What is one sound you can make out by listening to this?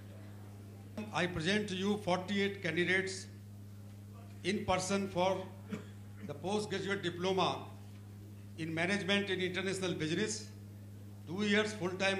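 A middle-aged man reads out a speech calmly through a microphone and loudspeakers, in a large echoing hall.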